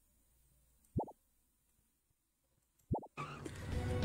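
A game menu gives short beeps as options are chosen.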